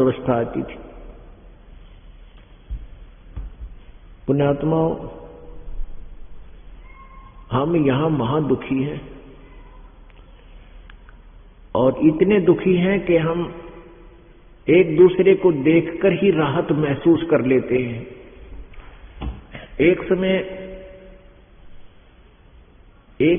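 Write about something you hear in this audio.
An elderly man speaks calmly in short bursts through a microphone.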